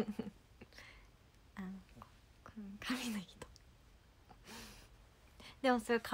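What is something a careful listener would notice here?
A young woman talks cheerfully, close to a microphone.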